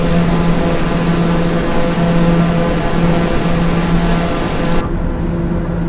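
A single-engine turboprop drones in cruise.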